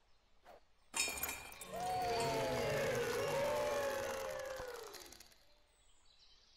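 A flying disc crashes into metal chains, which jingle and rattle before settling.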